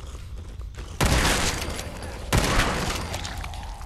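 A rifle fires loud shots that ring out.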